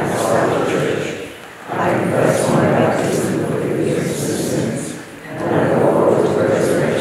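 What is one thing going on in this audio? A middle-aged man reads aloud calmly through a microphone in an echoing hall.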